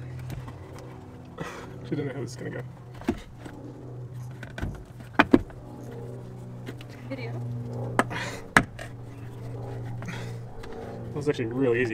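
Hands rub and knock against plastic inside a wheel arch.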